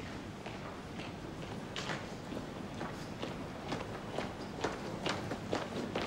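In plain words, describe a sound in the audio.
Footsteps echo along a hallway.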